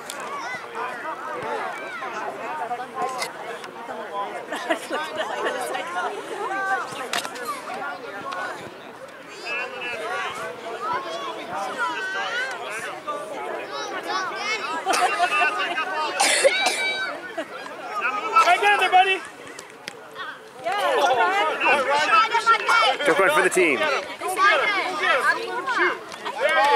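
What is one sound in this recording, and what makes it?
Young children shout and chatter excitedly outdoors.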